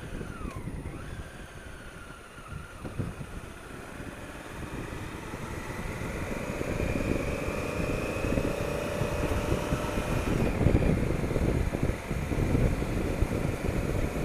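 Wind rumbles against a rider's helmet.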